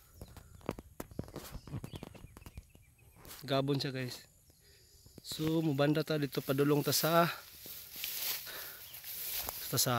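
Wind blows through tall grass outdoors.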